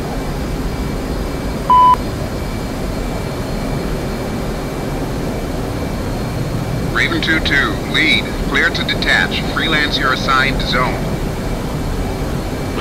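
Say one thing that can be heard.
A jet engine roars steadily with a low rumble.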